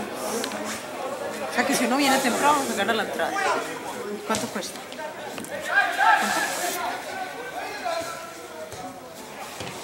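Spectators nearby talk and call out.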